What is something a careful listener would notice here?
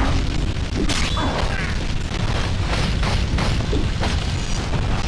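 Sword blows strike with sharp impacts.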